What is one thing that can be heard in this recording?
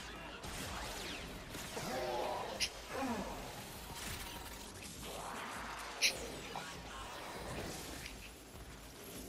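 Blades slash and clang with sharp metallic swishes.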